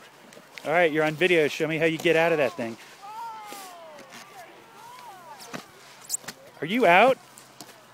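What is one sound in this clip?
A snowboard scrapes over snow.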